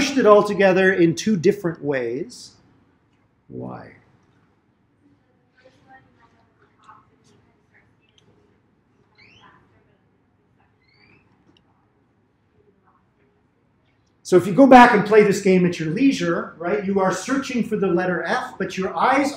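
A man lectures through a microphone, pausing for a while between remarks.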